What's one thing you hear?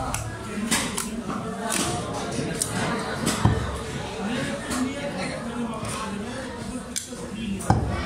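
A knife slices through fish flesh.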